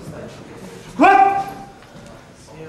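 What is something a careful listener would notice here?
A man shouts a short, loud call in an echoing hall.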